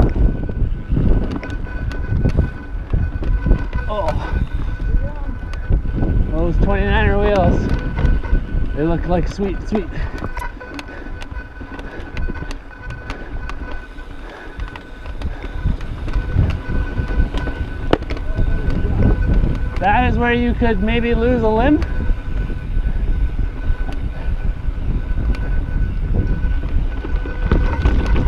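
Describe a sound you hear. A mountain bike rattles and clanks over bumps.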